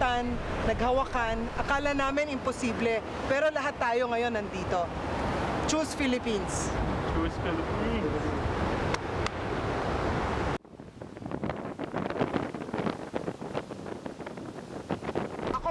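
Waves crash against rocks.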